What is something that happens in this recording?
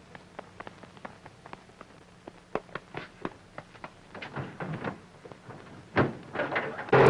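Footsteps run across dirt.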